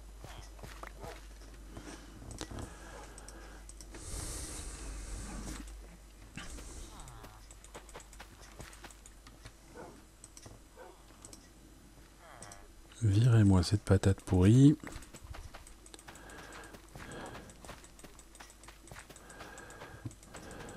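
Soft clicks sound as seeds are planted in soil.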